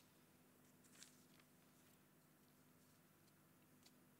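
Paper rustles as sheets are handled close by.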